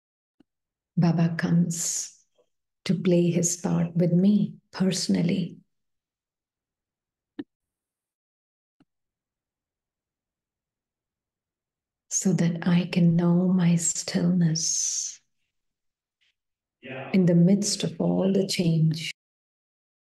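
A woman speaks calmly through an online call, in short phrases with long pauses.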